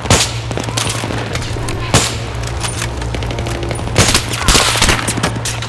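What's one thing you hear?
Rifle shots crack loudly, one at a time.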